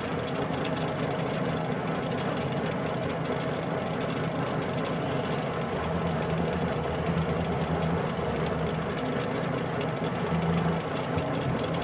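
A cutting tool scrapes against spinning metal.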